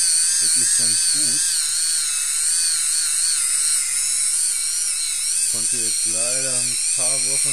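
An electric foot file whirs steadily with a slightly wavering buzz.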